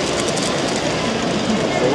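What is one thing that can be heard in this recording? A model train rolls along its track.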